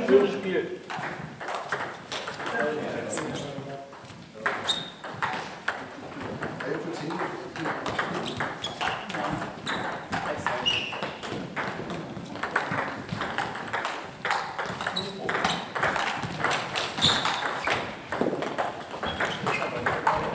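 Table tennis balls click rapidly back and forth on tables and paddles in a large echoing hall.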